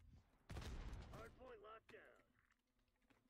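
A man speaks into a microphone with animation.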